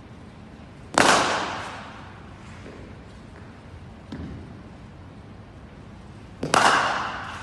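A cricket bat strikes a ball with a sharp crack that echoes through a large hall.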